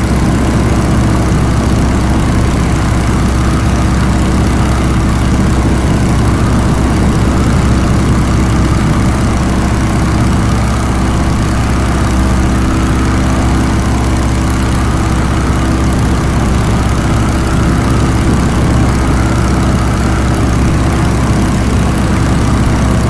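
A propeller engine drones steadily up close.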